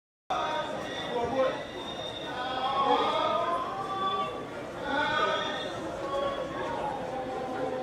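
A crowd of people talks and calls out nearby outdoors.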